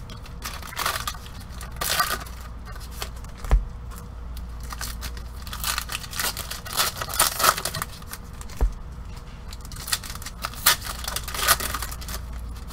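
Plastic card wrappers crinkle and rustle in gloved hands.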